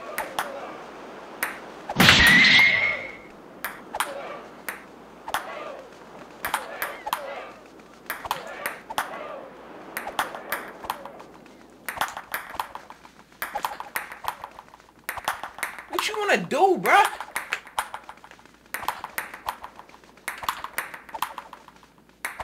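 A table tennis ball clicks back and forth in quick taps.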